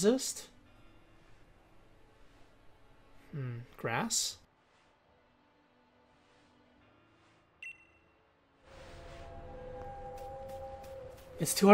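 Game sound effects swoosh and chime.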